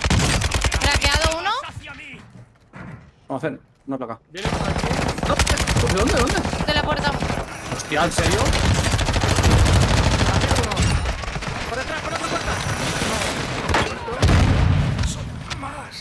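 Rapid gunfire from a video game crackles loudly.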